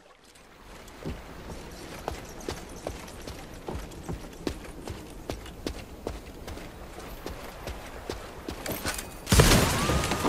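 Footsteps tap quickly and steadily.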